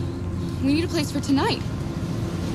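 A young woman speaks urgently up close.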